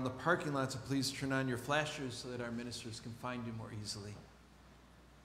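A man speaks calmly through a microphone in a reverberant room.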